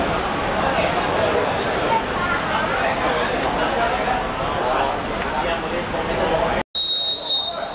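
A group of young men chatter outdoors.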